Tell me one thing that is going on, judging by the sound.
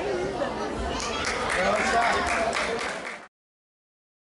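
Spectators clap and cheer.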